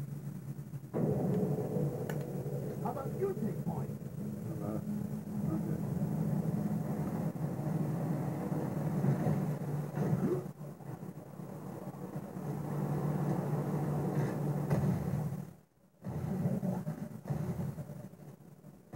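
A video game's low droning music plays through a television speaker.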